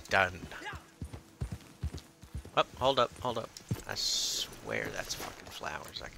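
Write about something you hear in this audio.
A horse gallops, its hooves pounding on the ground.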